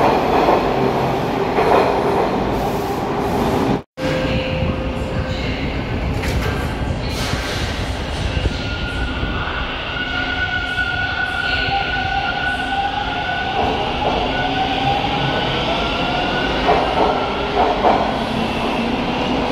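A subway train rumbles out of an underground station.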